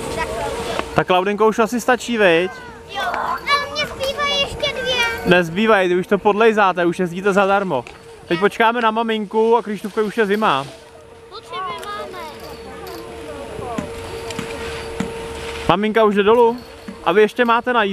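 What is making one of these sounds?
A young child talks close by, excitedly.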